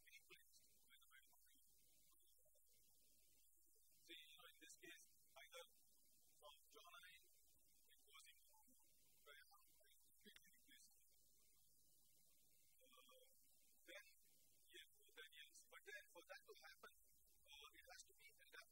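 A man lectures with animation at a distance.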